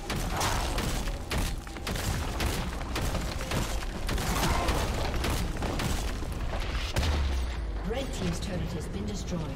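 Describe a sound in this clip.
Spell effects and blows crash and zap in a game fight.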